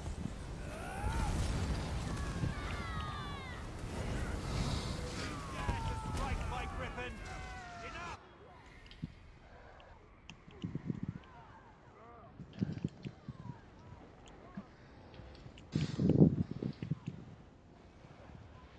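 Magic spells crackle, whoosh and burst in a fierce battle.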